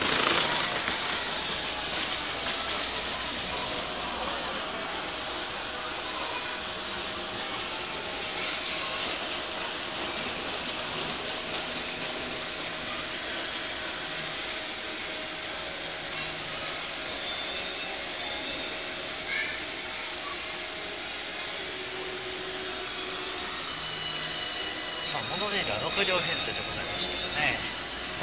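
A train idles with a steady hum.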